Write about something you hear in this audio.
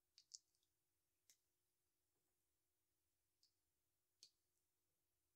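Small plastic bricks click together.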